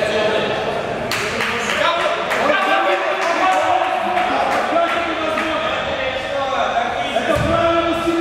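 A man shouts instructions with animation nearby.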